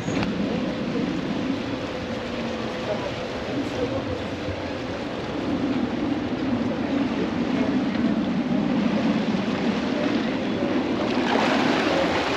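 A boat engine rumbles nearby.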